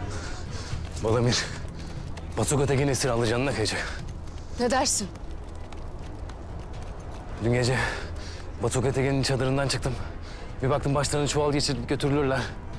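A young man speaks tensely and clearly, close by.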